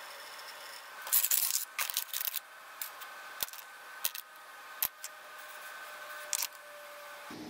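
Metal parts clink against each other.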